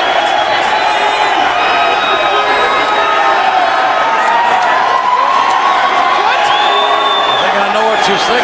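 A large crowd cheers and roars loudly in an echoing arena.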